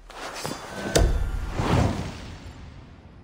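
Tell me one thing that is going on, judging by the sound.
A sword blade thuds heavily into a wooden table.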